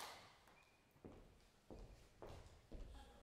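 Footsteps cross a wooden stage floor.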